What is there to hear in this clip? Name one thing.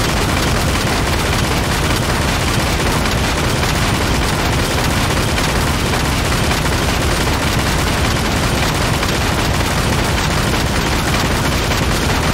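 A magical spell shimmers and crackles in a game.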